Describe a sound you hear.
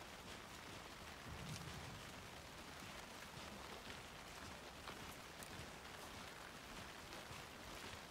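Footsteps crunch on a forest path.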